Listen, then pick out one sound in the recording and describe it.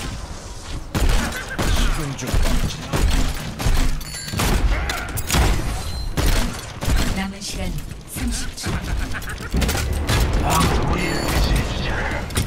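A weapon fires in quick repeated shots.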